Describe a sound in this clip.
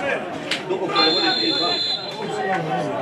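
A referee's whistle blows briefly outdoors.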